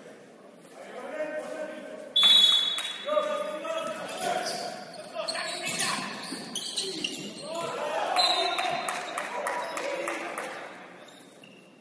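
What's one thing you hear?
Young players shout to each other across the court.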